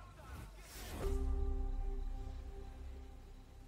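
A game jingle chimes with rising tones.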